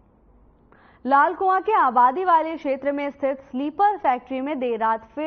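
A young woman reads out the news calmly through a microphone.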